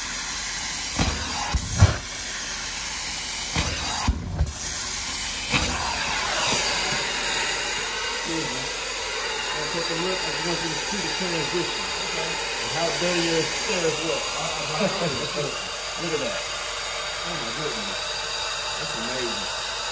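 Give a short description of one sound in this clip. A carpet cleaning machine whooshes and hums steadily.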